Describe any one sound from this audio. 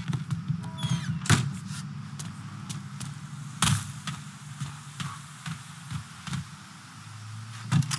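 Footsteps crunch on dry ground outdoors.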